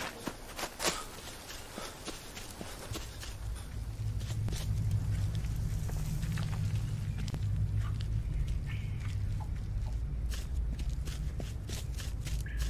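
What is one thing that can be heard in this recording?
Footsteps crunch slowly over loose stones.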